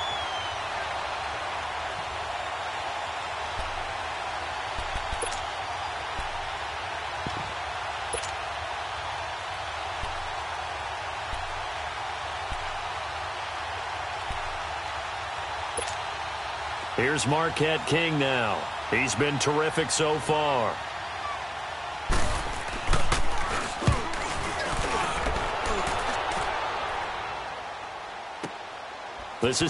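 A large crowd murmurs and roars steadily in a big stadium.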